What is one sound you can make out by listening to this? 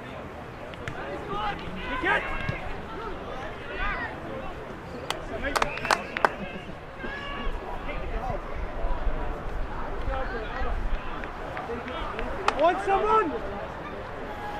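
Men shout to each other outdoors across an open field.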